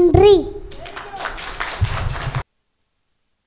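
A small group of people clap their hands in applause.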